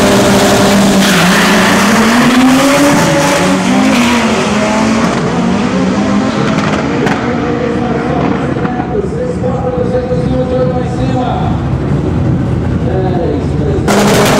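Race car engines rise and fall in pitch as the cars shift gears.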